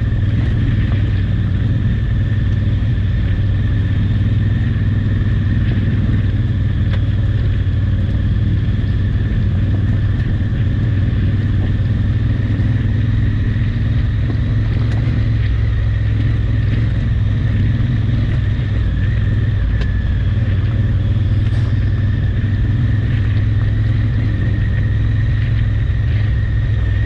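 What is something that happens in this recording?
A motorcycle engine drones steadily close by.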